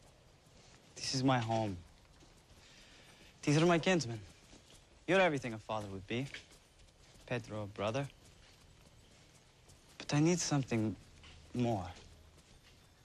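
A man speaks calmly, close by.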